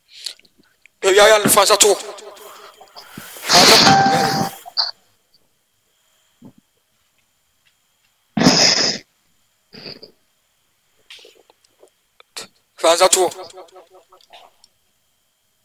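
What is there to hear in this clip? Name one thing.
A man speaks loudly and with animation over an online call, in bursts with pauses.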